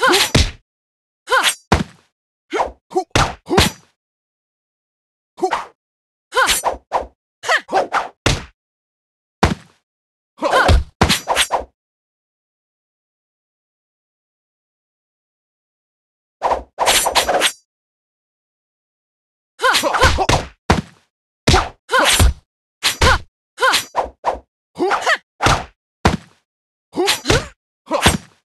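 Blades clash and slash in quick bursts of fighting.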